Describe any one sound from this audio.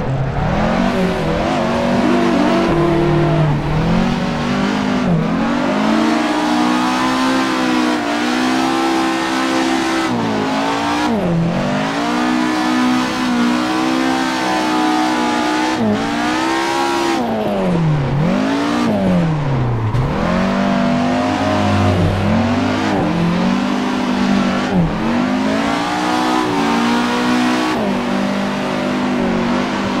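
Tyres screech as a car slides through bends.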